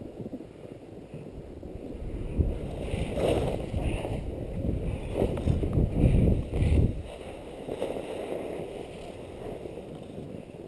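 Skis hiss and carve through deep powder snow.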